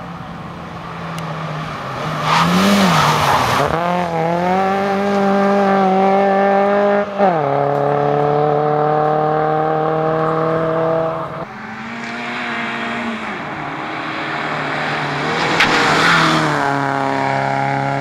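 A rally car engine roars loudly as a car speeds past close by.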